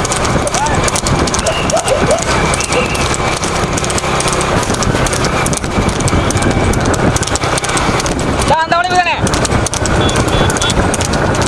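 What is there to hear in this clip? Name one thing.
A horse's hooves clop on a paved road.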